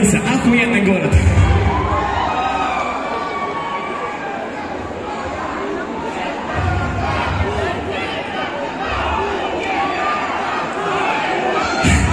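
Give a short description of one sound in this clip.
A young man raps into a microphone over loud speakers in a large echoing hall.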